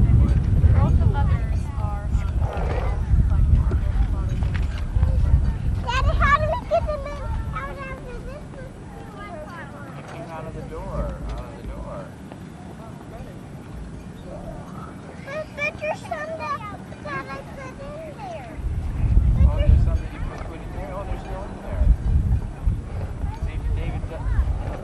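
Children talk and call out nearby, outdoors.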